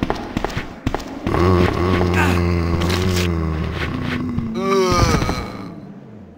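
A zombie groans and moans close by.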